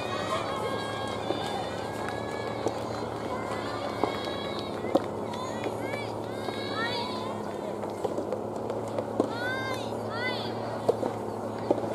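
A tennis ball bounces on a court several times.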